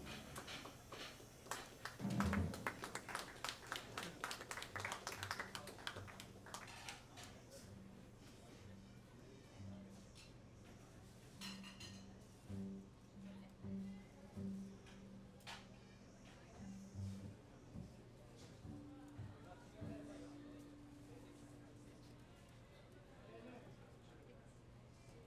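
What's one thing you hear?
A double bass plucks a walking bass line.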